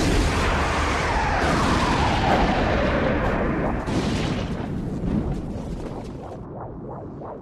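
An energy beam blasts with a loud, rushing roar that slowly fades.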